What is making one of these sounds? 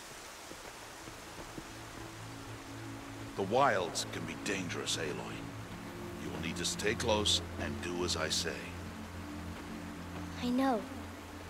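A shallow stream trickles over rocks.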